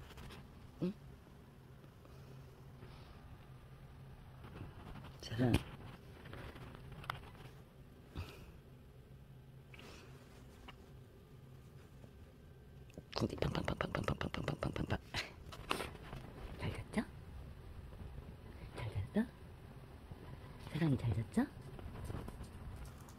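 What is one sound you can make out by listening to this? Soft bedding rustles as a kitten rolls and paws at it.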